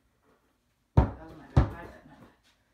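A basketball bounces with loud thumps on a floor.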